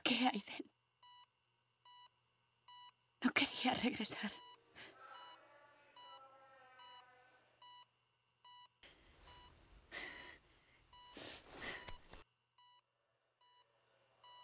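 A heart monitor beeps steadily.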